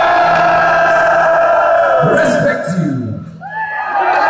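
A man sings along loudly close by.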